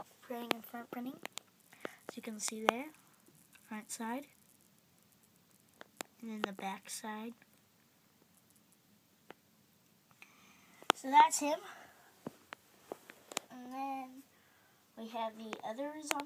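A young child talks with animation close by.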